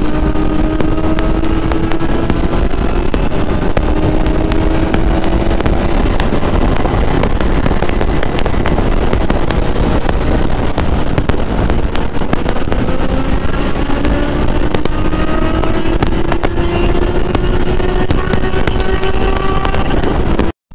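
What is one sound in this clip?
A motorcycle engine hums steadily and slowly rises in pitch as it speeds up.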